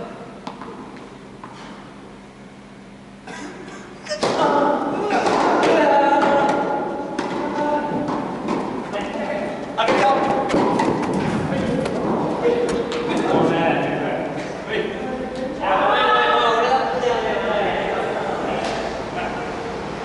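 Tennis balls are struck with rackets, with sharp pops echoing in a large hall.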